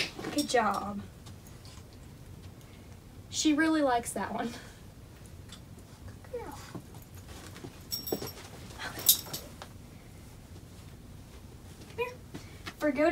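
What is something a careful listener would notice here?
A young woman speaks to a puppy in a high, cheerful voice nearby.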